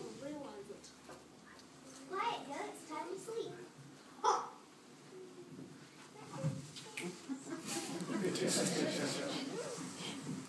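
Young children speak from a stage in an echoing hall.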